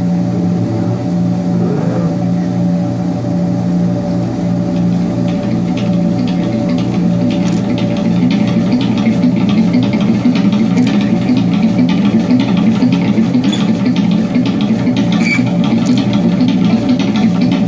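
An electric guitar plays a rhythmic pattern through an amplifier.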